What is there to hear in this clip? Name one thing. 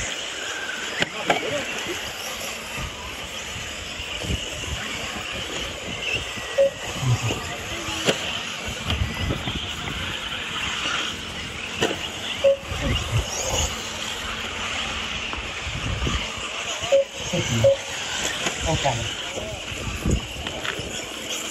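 Small electric motors whine as model cars race on dirt.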